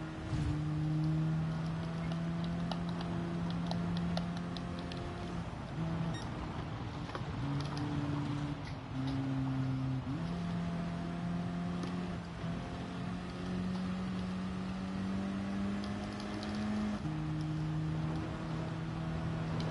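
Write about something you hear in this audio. A racing car engine drones and shifts gears as it speeds along.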